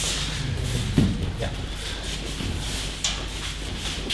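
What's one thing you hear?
Bodies thud onto mats in a large echoing hall.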